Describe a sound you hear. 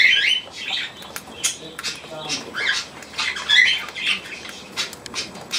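Budgies chirp and chatter close by.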